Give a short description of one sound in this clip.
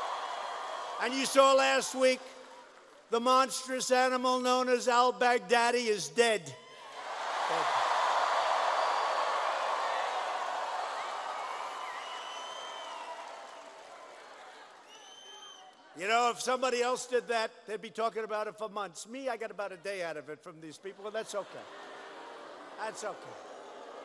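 A man speaks forcefully into a microphone over loudspeakers in a large echoing hall.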